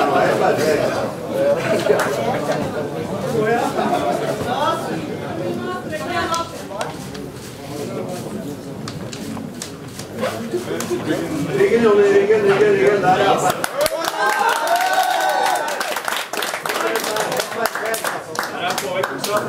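A crowd of spectators shouts and cheers in a hall.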